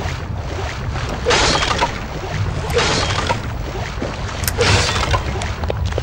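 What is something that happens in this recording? Wooden barrels smash and splinter.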